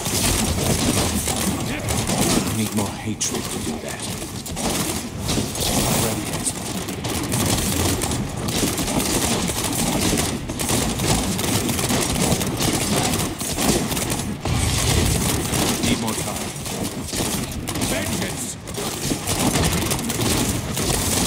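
Game spells crackle and explode in rapid bursts.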